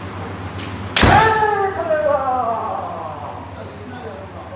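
A man shouts loudly and sharply in an echoing hall.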